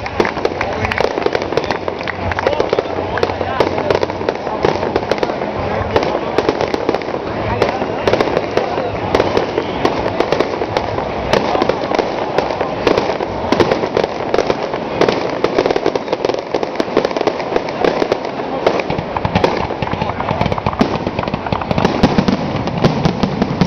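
A crowd of people chatter and shout nearby outdoors.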